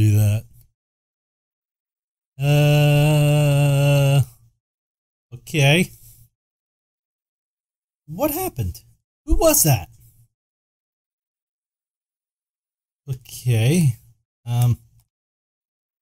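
A young man talks and exclaims with animation, close to a microphone, in short bursts.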